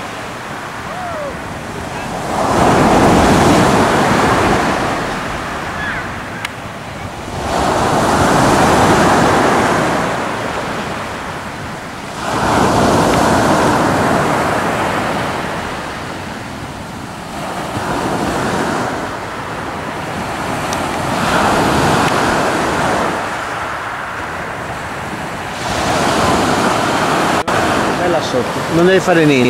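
Waves break on a pebble shore and wash back in slow, regular surges.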